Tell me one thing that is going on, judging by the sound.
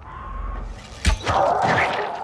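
A blade strikes flesh with a wet thud.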